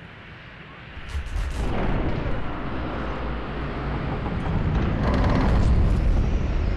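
Heavy iron gates creak and grind open with a deep rumble.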